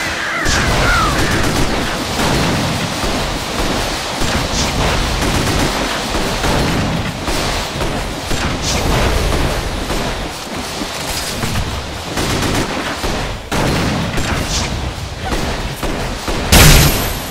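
Weapons clang and thud in rapid strikes.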